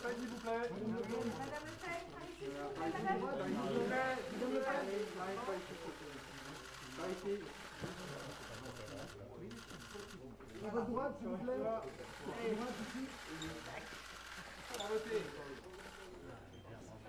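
A woman talks nearby in a lively tone.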